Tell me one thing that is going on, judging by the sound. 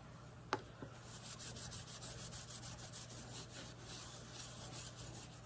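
A soft stamper rubs and scrapes across a metal plate.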